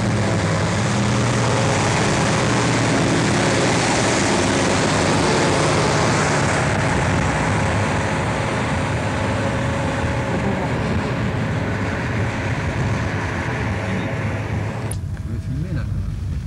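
A huge diesel truck engine rumbles loudly close by, then fades as the truck drives away.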